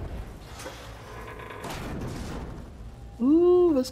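A heavy metal door slides open with a rumble.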